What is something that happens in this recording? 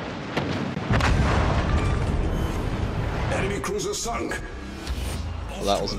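A large explosion bursts and rumbles.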